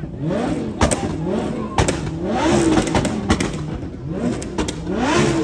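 A car exhaust pops and bangs sharply.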